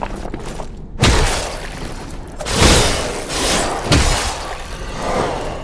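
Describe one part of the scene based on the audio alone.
A sword strikes in heavy blows.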